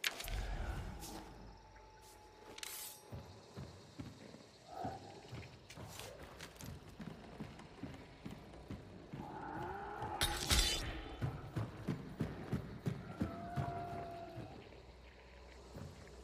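Footsteps thud on creaky wooden boards.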